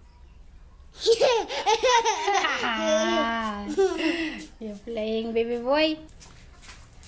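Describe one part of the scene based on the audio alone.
A small child laughs and squeals loudly close by.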